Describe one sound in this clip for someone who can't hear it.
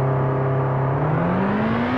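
A racing car's engine revs up again.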